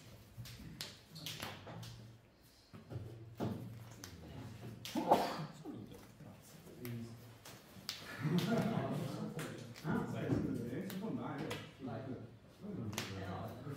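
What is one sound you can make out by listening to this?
Cards shuffle and riffle in hands.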